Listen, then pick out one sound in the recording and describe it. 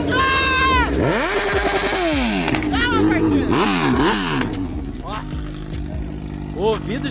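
A motorcycle engine revs up and down in sharp bursts close by.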